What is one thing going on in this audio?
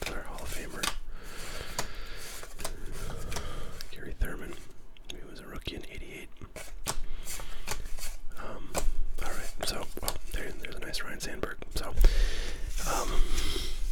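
Trading cards flick and rustle as they are shuffled by hand.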